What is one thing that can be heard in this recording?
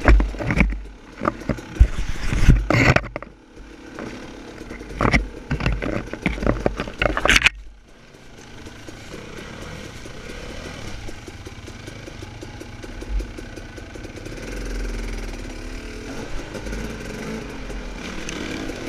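A dirt bike engine revs and sputters close by.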